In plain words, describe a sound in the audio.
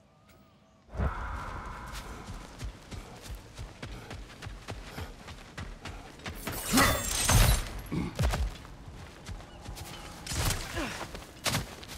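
Footsteps crunch on a forest path.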